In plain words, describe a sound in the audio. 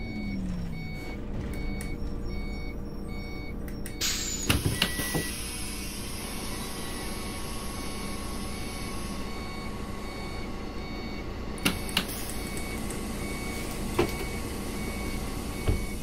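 A bus engine idles steadily.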